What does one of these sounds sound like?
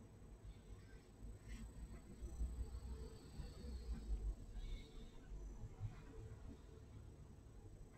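A brush softly brushes and scrapes across paper.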